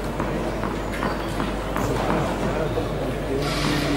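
A tennis ball bounces on a clay court before a serve.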